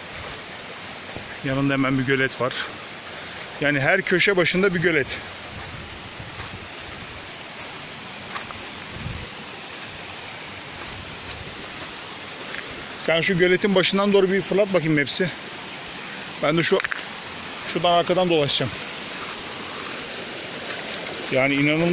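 A shallow stream trickles and babbles over stones nearby.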